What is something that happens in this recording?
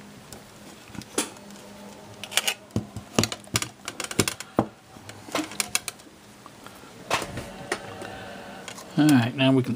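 Metal parts and wires clink and rattle as they are handled.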